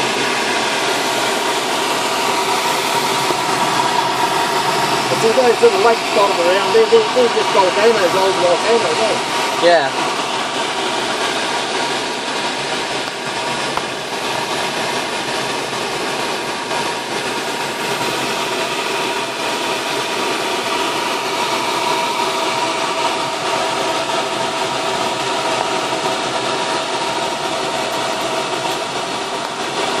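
Wind rushes past the aircraft.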